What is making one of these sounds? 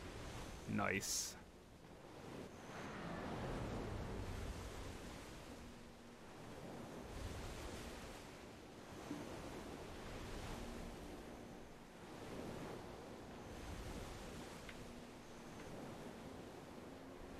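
Waves wash and splash against a sailing ship.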